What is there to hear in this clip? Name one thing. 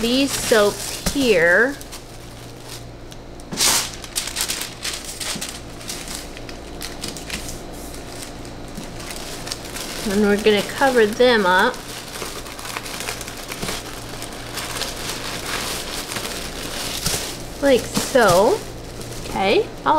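Paper rustles and crinkles as it is folded and tucked into a box.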